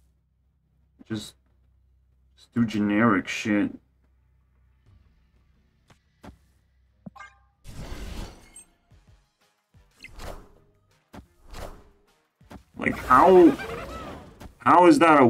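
Card game sound effects whoosh and chime as cards are played.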